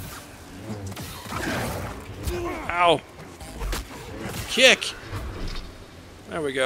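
A lightsaber clashes with crackling sparks.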